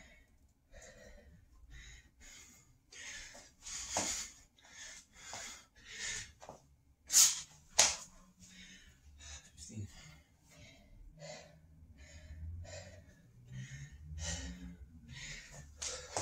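A man breathes hard in quick, loud puffs.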